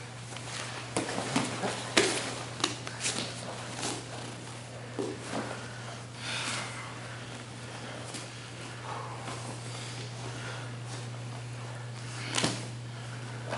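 Hands and feet thump on a padded mat.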